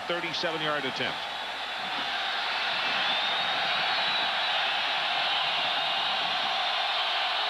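A large stadium crowd cheers and roars, growing louder.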